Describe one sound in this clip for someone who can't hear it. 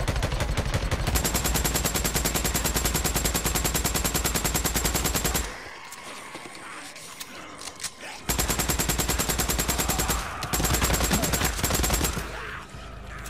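A rifle fires in rapid bursts of gunshots.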